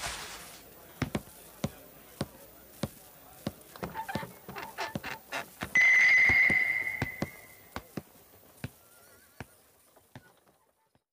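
Heavy footsteps thud slowly on a wooden floor.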